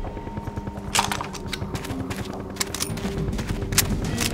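A rifle bolt clicks and clacks as the rifle is reloaded.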